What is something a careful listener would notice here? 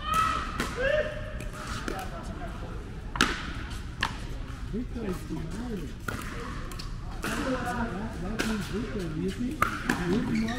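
Paddles pop sharply against a plastic ball, back and forth, in a large echoing hall.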